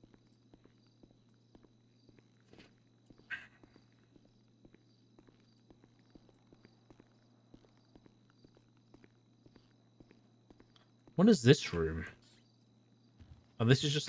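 Footsteps tap steadily on a hard floor indoors.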